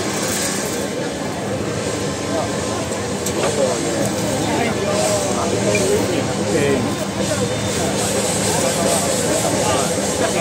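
A large outdoor crowd murmurs and chatters steadily.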